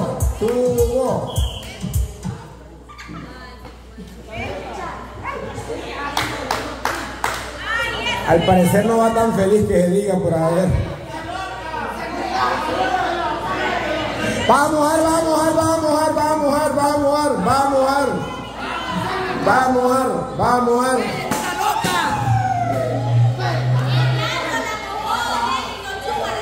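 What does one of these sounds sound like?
A man speaks loudly and with animation to a crowd.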